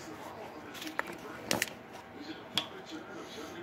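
A plastic water bottle crinkles and clicks close by.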